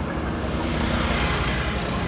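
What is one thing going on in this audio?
A three-wheeled motor rickshaw rattles past nearby.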